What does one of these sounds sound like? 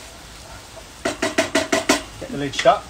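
A wooden spoon scrapes and stirs in a pan.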